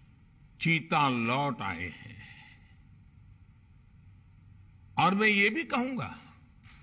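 An elderly man speaks emphatically into a microphone.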